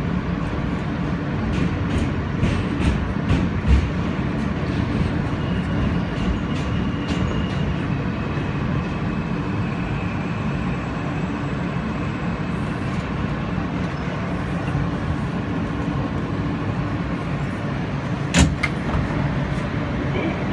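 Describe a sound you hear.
A subway train rumbles steadily along the tracks and slows into a station.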